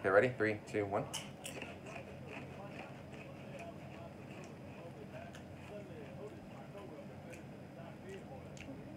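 A young man crunches on a chip.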